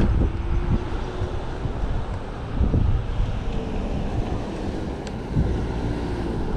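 A bicycle's tyres hum on the road.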